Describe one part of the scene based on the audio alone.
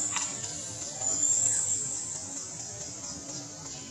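A baby monkey scampers across dry leaves.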